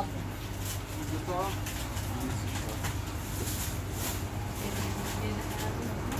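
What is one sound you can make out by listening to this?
Plastic bags rustle.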